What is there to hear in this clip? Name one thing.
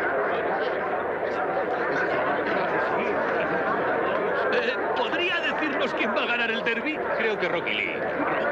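A crowd of men chatters and shouts all around.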